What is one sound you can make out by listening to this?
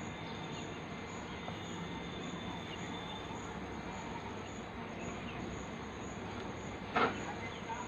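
A knife taps on ice on a wooden board.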